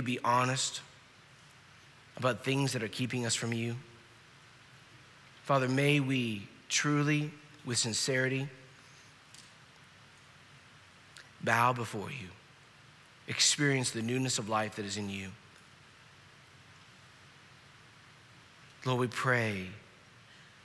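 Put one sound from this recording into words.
A middle-aged man reads aloud slowly and deliberately into a microphone, with long pauses.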